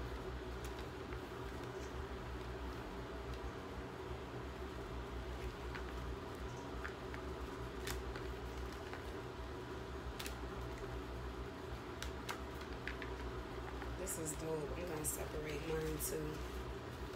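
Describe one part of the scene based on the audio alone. Cardboard boxes and paper cards rustle and tap as hands handle them.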